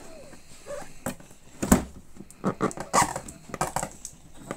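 A cardboard box scrapes and bumps across a wooden floor, close by.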